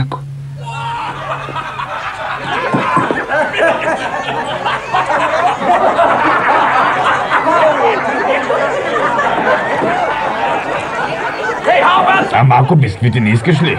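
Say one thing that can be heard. A crowd of men and women chatter and murmur in a busy room.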